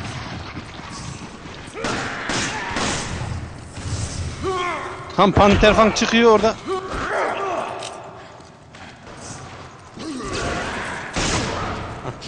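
A handgun fires several sharp shots.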